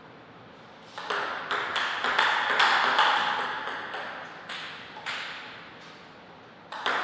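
A ping-pong ball clicks back and forth on paddles and a table in a rally.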